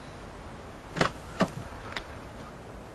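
A car door opens with a heavy clunk.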